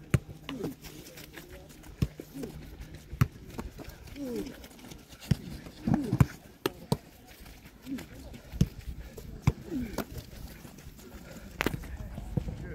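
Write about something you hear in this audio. A football thumps against a foot in quick, repeated kicks.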